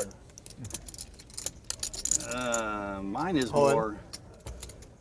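A man at a table talks and laughs.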